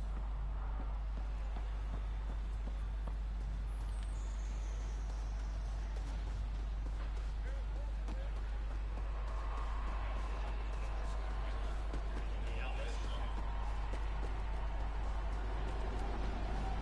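Footsteps run quickly over soft sand.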